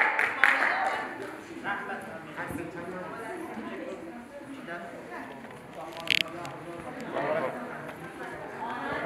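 A group of young people laugh and chatter in a lively crowd.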